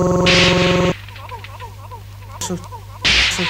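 A record is scratched back and forth on a turntable, making quick squeaky sweeps.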